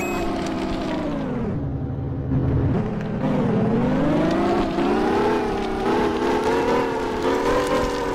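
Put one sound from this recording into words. A car engine hums and revs, rising and falling in pitch.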